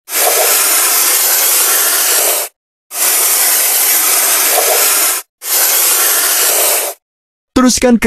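A pressure washer sprays water with a loud, steady hiss.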